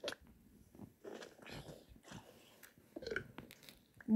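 A block breaks with a short crunching sound.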